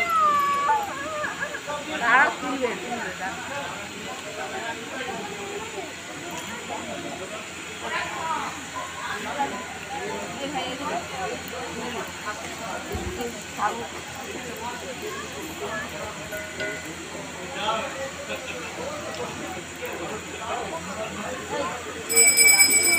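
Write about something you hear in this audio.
A crowd of women chatter all around.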